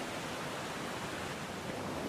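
Waves crash and churn against rocks.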